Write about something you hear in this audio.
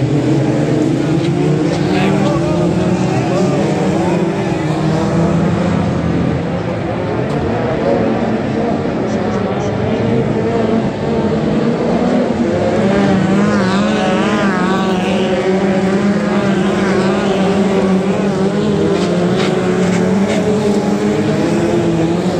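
Race car engines roar loudly and rise and fall in pitch.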